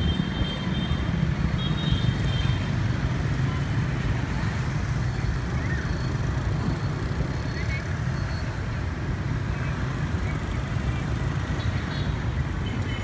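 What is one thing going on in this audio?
Motor scooters ride past on a street.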